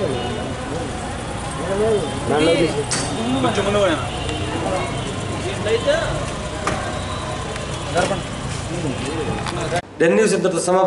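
Several women and men talk in agitated voices close by.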